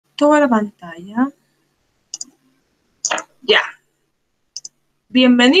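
A young woman speaks calmly and close, heard through an online call.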